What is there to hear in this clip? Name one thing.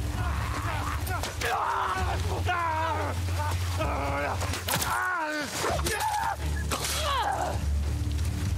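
A man shouts and cries out in pain close by.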